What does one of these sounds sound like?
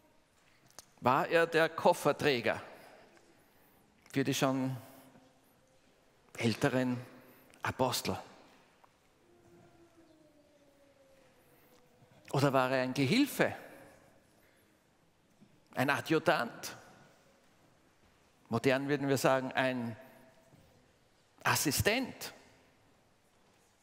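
An elderly man speaks with animation into a microphone, pausing between phrases, in a room with some echo.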